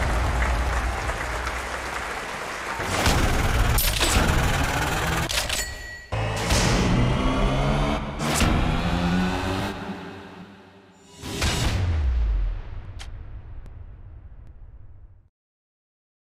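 Loud game music plays with whooshing hits, then cuts off to silence.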